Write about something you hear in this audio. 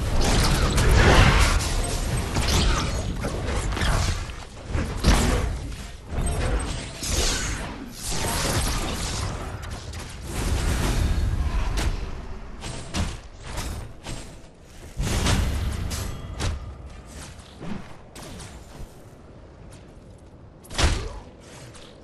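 Explosions boom in a game battle.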